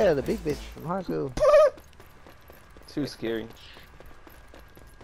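Footsteps run quickly on a hard floor.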